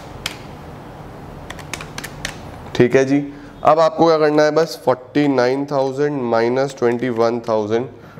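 Calculator keys click as they are tapped.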